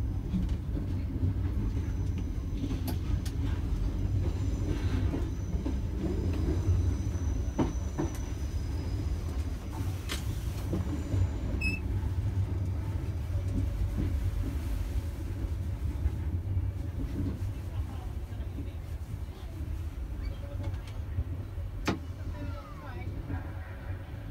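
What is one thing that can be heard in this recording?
A train rumbles low and steady as it rolls slowly along the tracks.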